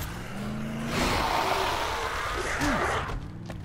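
A zombie snarls and growls up close.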